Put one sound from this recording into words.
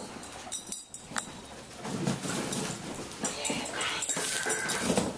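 A dog noses and knocks cardboard boxes across a hard floor.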